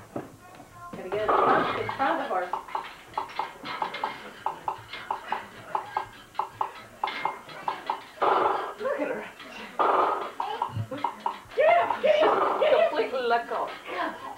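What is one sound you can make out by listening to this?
A young woman talks to a small child with animation, close by.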